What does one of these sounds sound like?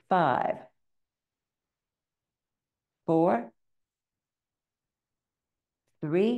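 An elderly woman calls out short words through a microphone, with pauses between them.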